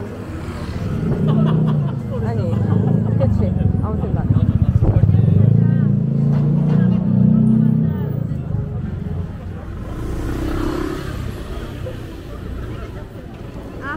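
A scooter engine hums as the scooter passes close by.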